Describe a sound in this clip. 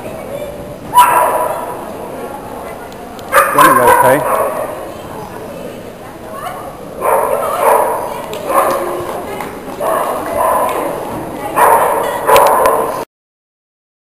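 A woman calls out with animation to a dog in a large echoing hall.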